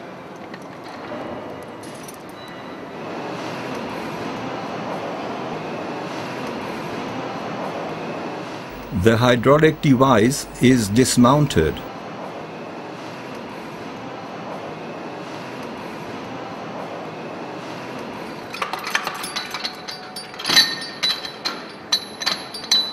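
Machinery hums steadily.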